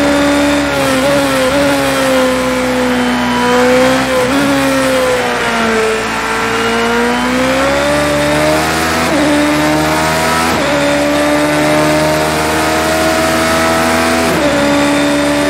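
A racing car engine briefly dips in pitch at each gear change.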